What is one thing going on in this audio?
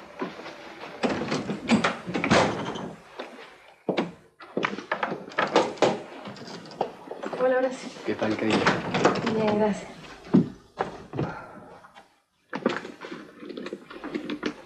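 A woman speaks with emotion, close by.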